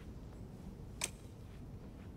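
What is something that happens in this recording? A metal object is picked up with a sharp clack.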